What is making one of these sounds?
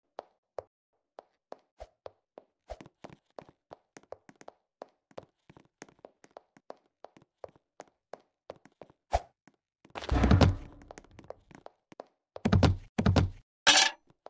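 Footsteps tap quickly across a wooden floor.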